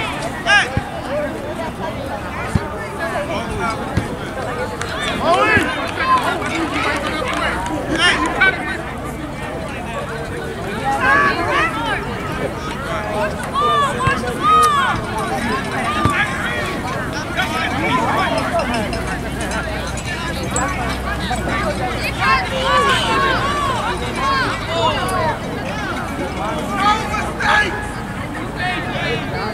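A crowd of spectators chatters and cheers outdoors.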